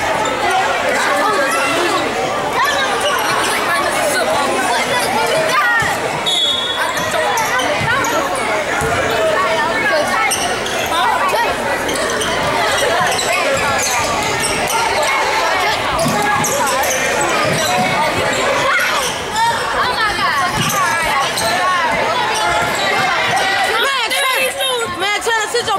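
A crowd chatters and cheers loudly in an echoing gym.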